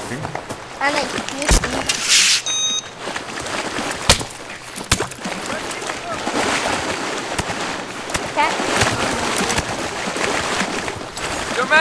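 Water splashes as someone wades through a stream.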